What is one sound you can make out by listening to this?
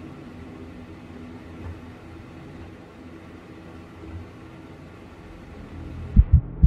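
A low, steady machine hum fills an enclosed space.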